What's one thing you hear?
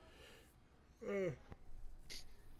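A man speaks briefly into a close microphone, with a rising exclamation.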